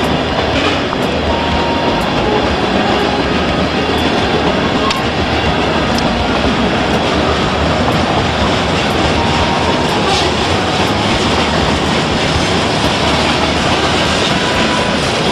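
Steel wheels squeal and clank on the rails.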